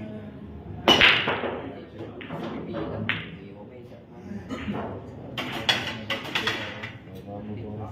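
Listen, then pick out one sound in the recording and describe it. Pool balls clack against each other and thud off the cushions.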